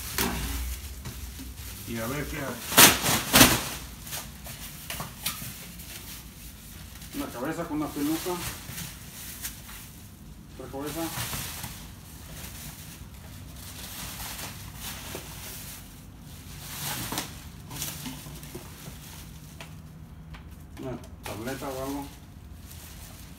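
Plastic bags rustle and crinkle as items are dug through.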